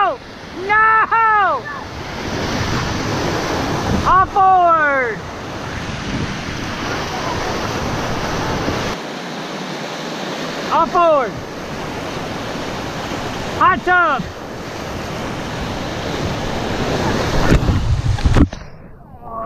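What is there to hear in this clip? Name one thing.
White water rushes and roars loudly around a raft.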